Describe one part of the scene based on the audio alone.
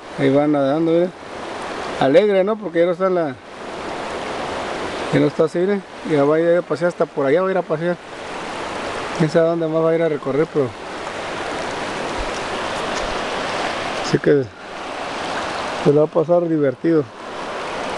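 A river flows and ripples steadily nearby.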